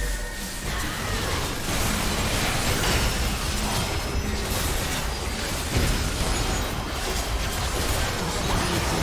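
Game spell effects crackle and blast in a fight.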